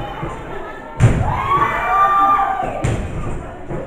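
A body slams heavily onto a wrestling ring mat with a loud thud.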